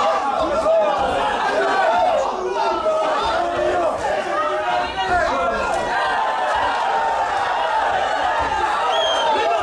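Several men shout instructions from ringside in a large echoing hall.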